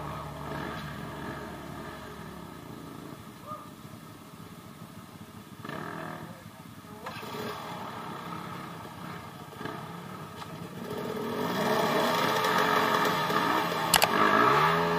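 A dirt bike engine revs hard and strains up a steep slope.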